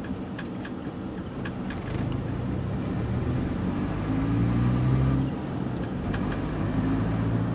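A car engine hums steadily from inside the moving car, rising and falling with speed.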